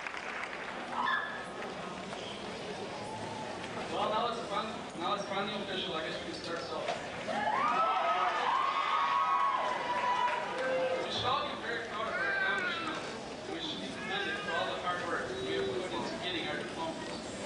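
A young man speaks through a microphone in a large echoing hall.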